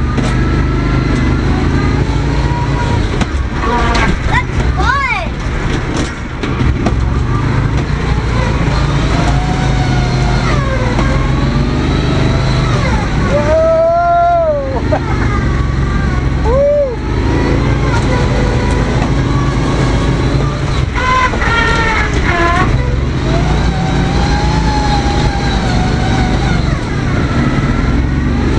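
Tyres churn and splash through mud.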